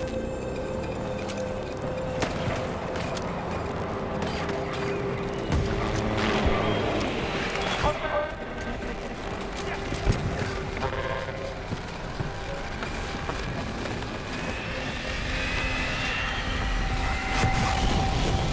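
Gunfire and blasts crackle in the distance.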